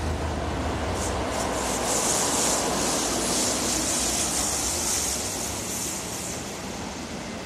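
Train wheels hiss and squeal on the rails.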